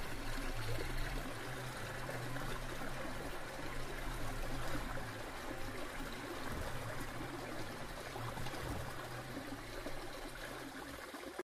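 Water swirls and sloshes in a plastic pan.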